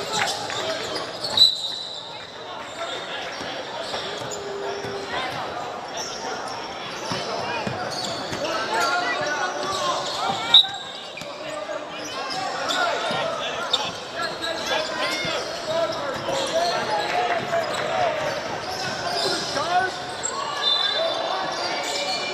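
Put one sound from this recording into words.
Young women players shout and call to each other across an open outdoor field.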